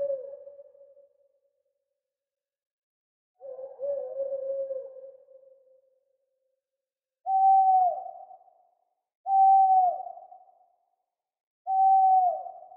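An owl hoots in low, repeated calls that fade out with an echo.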